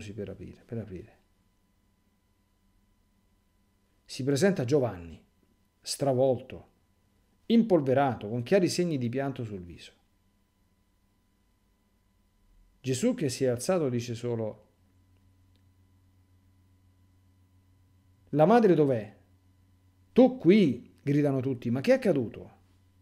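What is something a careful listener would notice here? A middle-aged man speaks calmly and slowly, close to a microphone, with long pauses.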